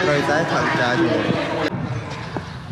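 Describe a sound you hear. A crowd chatters and laughs outdoors.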